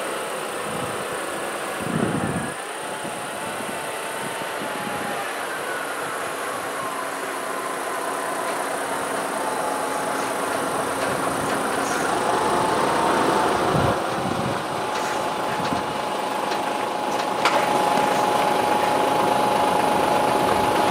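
Tyres roll slowly on a wet road.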